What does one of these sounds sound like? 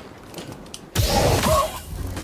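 A lightsaber ignites with a sharp whoosh.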